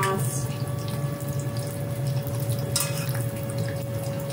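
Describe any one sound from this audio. Chopsticks scrape and clink in a pot of vegetables.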